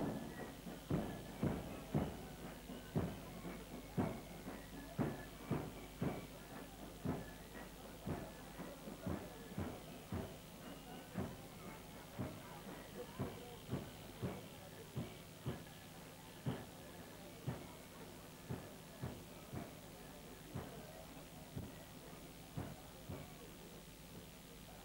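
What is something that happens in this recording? Fifes play a lively marching tune.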